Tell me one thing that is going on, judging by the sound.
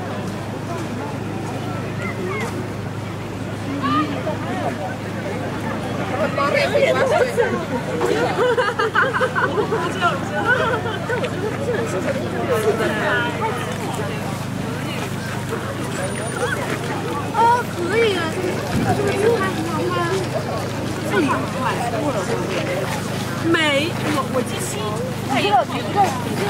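A crowd of people chats nearby and in the distance in the open air.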